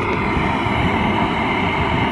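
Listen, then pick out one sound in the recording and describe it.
A gas torch flame roars.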